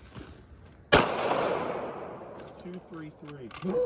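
A pistol fires a single loud shot that echoes through open woods.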